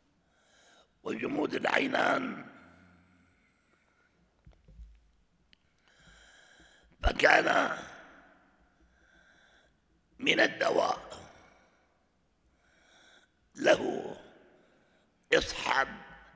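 An elderly man speaks slowly and gravely into a microphone, in bursts with pauses, in a reverberant hall.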